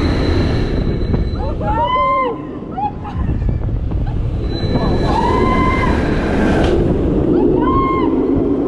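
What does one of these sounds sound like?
A roller coaster train rumbles and clatters along its steel track.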